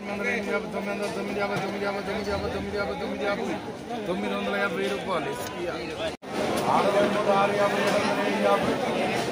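A crowd of men chatters all around outdoors.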